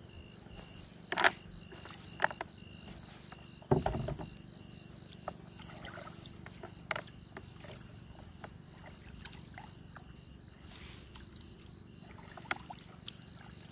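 Water splashes and drips as a wet fishing net is hauled out of the water.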